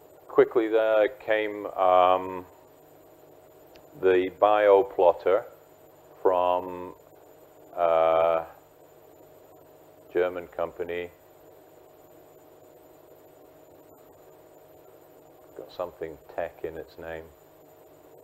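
A middle-aged man speaks with animation through a lavalier microphone in a slightly echoing room.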